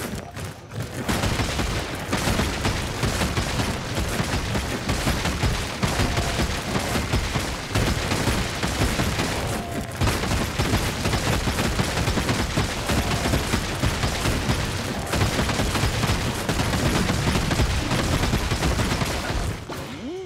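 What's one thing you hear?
Explosions boom and crackle as a game boss attacks.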